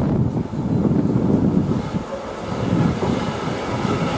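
A diesel locomotive rumbles past up close.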